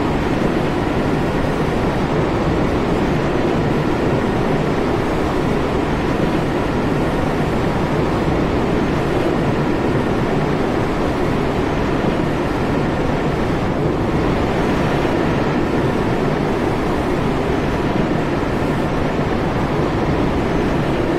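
A locomotive engine drones steadily.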